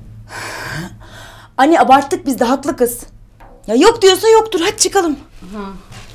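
A young woman cries out and wails emotionally.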